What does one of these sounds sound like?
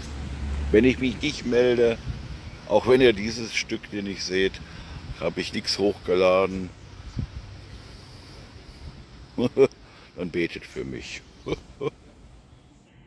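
An elderly man talks calmly, close to a phone's microphone, outdoors.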